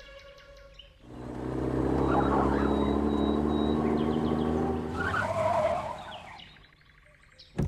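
A truck engine roars as the truck drives by, then fades.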